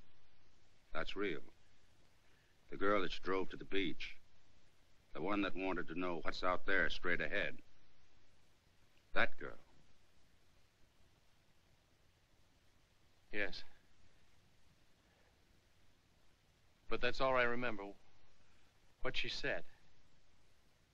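A young man speaks calmly nearby, in short phrases with pauses.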